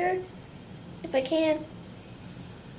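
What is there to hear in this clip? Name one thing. A young girl speaks briefly and softly nearby.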